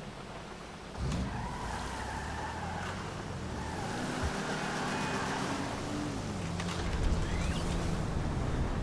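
A car engine starts and revs as the car drives off.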